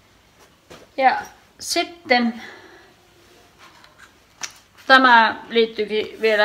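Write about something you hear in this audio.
A young woman speaks close by in short, animated bursts.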